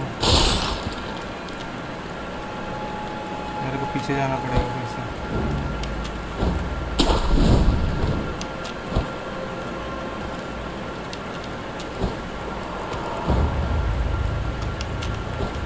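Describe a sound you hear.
Quick footsteps patter over the ground.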